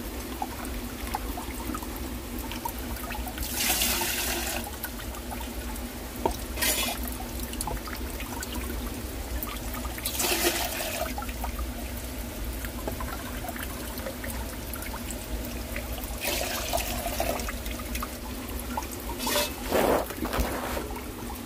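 Water trickles steadily into a clay jar.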